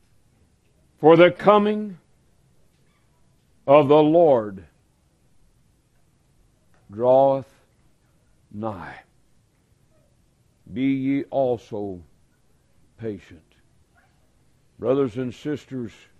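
A man speaks slowly and deliberately into a microphone, with long pauses.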